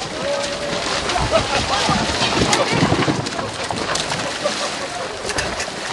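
Water splashes as a heavy wooden boat slides into the sea.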